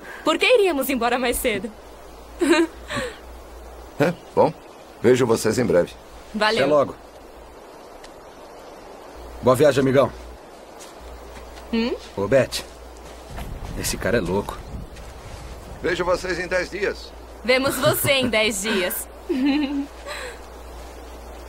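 A young woman talks and laughs nearby.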